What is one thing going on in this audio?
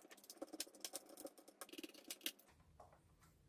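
A screwdriver clicks against a laptop's plastic case.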